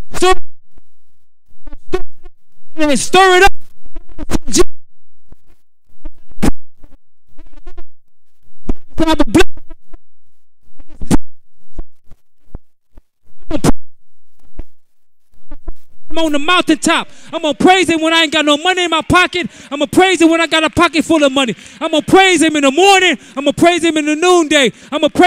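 A man sings and preaches with feeling through a microphone.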